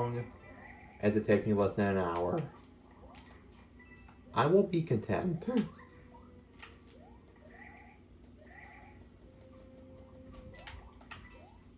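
Short chirping video game sound effects play through a television speaker.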